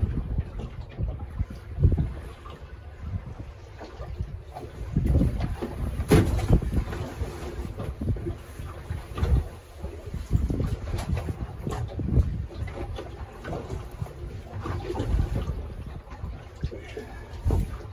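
Choppy water slaps against a boat's hull.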